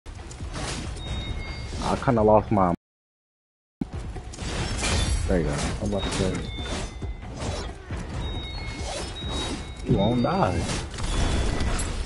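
Weapons clash and slash in rapid combat.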